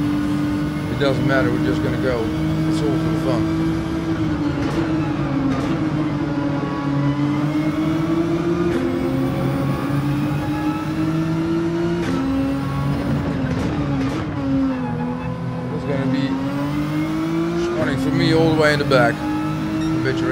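Tyres squeal briefly through a corner.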